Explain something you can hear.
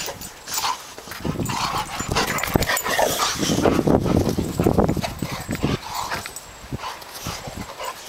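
Dogs growl and snarl playfully while wrestling.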